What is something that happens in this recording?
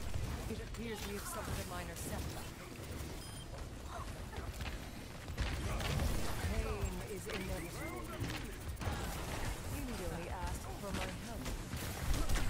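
Video game gunfire crackles and bursts in quick volleys.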